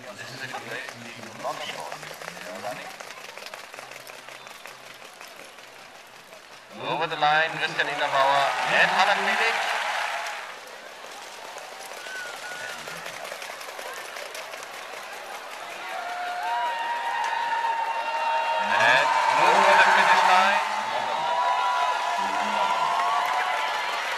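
Hooves of Icelandic horses drum on a dirt track as the horses race at a flying pace.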